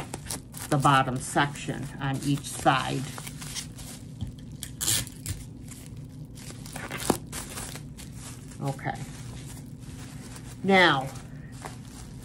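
Bubble wrap crinkles and rustles as it is handled.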